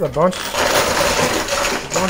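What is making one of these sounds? Coins and plastic chips tumble over an edge and clatter down.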